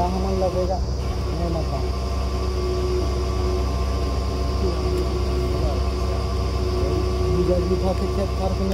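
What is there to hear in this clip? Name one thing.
A drilling rig's engine drones loudly and steadily nearby.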